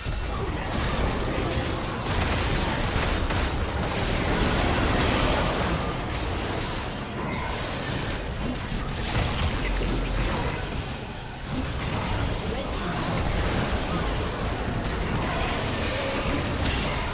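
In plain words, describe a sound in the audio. Game spell effects whoosh and blast during a fight.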